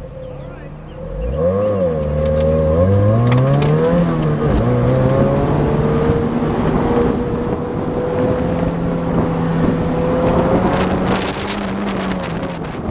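A car engine revs hard and roars as the car accelerates.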